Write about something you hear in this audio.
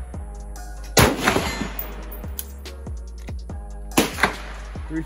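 Rifle shots crack loudly outdoors.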